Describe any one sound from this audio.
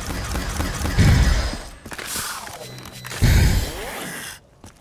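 A ray gun fires loud, buzzing blasts.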